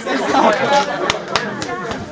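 Hands pat a back during a hug.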